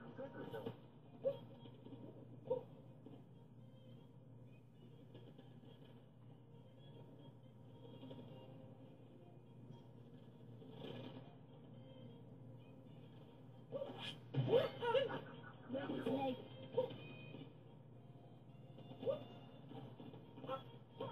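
Video game music and sound effects play from a television speaker.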